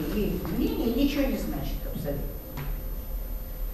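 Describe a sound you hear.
An older woman speaks with animation through a microphone.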